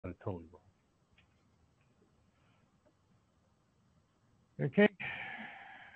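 An elderly man speaks briefly and calmly through an online call.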